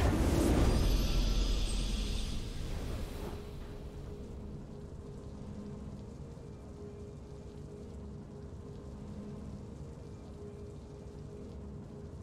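A triumphant game fanfare plays, then fades into a soft hum.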